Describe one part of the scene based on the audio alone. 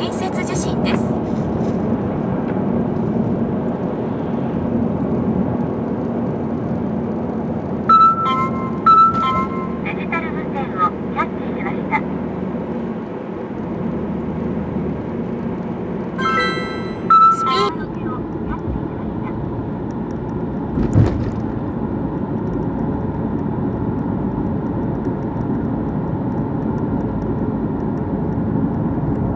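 A car engine hums steadily with tyre and road noise while driving.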